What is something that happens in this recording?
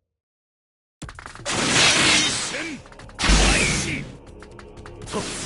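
Fighting game sound effects whoosh and clash loudly.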